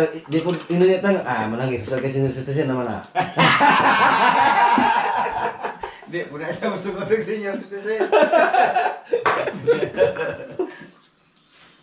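Several men chat casually nearby.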